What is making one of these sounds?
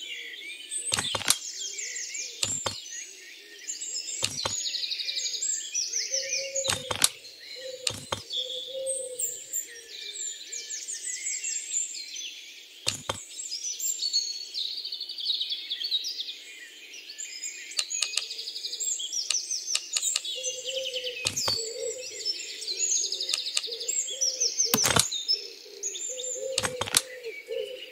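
Stone tiles slide and clack sharply into place.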